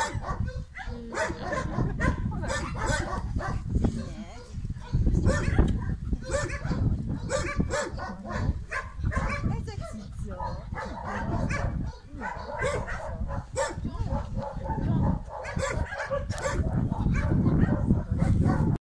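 A woman talks softly and warmly to dogs nearby.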